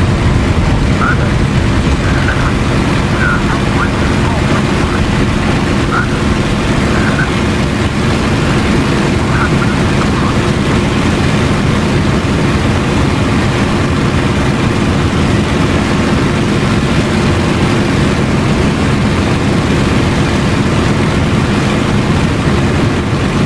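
Wind rushes past the cockpit.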